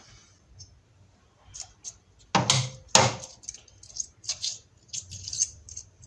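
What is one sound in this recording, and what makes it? A metal lever clanks as it is moved by hand.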